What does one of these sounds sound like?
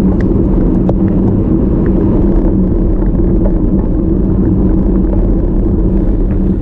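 Bicycle tyres hum on smooth asphalt.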